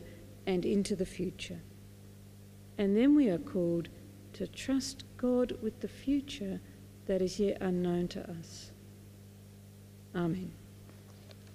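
A middle-aged woman speaks calmly into a microphone in an echoing room.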